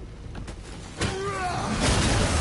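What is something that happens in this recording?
An axe swings and strikes with a heavy crash.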